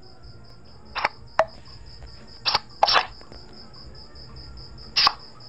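Playing cards click as they are picked up and laid down.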